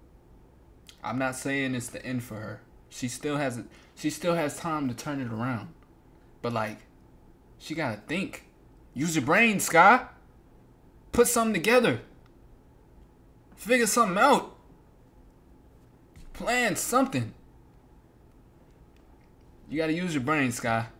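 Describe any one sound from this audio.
A young man talks with animation into a microphone, in bursts with pauses.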